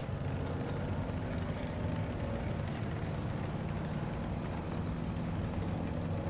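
A tank engine rumbles steadily and deeply.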